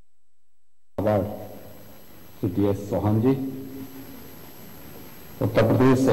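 A man speaks steadily into a microphone.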